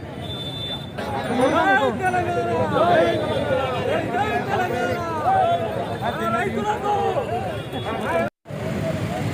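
A crowd of men shout and chant loudly outdoors.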